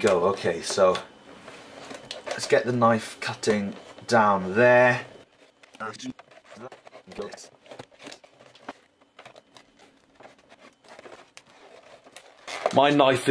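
Plastic packaging crinkles and rustles as hands open it.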